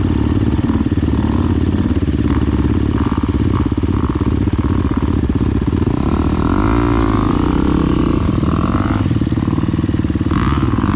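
A dirt bike engine idles close by with a steady chugging rumble.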